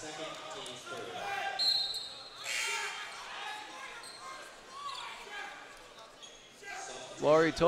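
A crowd murmurs and chatters in an echoing gym.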